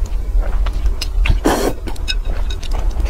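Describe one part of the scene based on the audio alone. A woman slurps noodles loudly close up.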